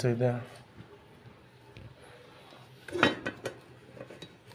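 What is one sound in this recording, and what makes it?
A metal lid clanks against a cooking pot.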